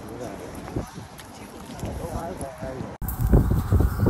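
Footsteps walk on a snowy pavement.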